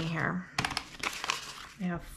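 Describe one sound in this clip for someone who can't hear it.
Paper banknotes rustle as they are counted.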